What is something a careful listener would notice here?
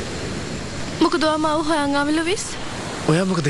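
A young woman speaks quietly, close by.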